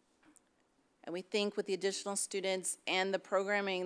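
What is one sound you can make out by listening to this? A woman speaks calmly into a microphone over an online call.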